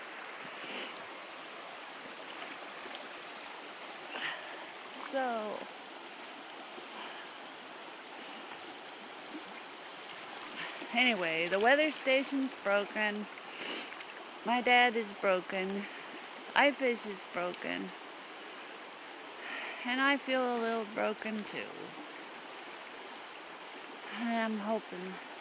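A river rushes steadily over rocks.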